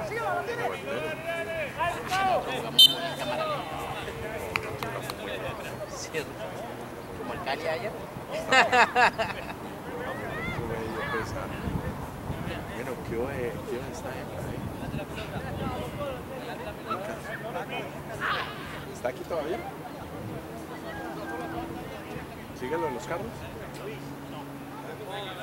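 Men shout and call out to each other in the distance outdoors.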